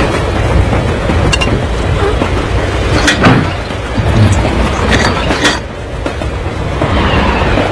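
A heavy metal handle clanks as it is pulled.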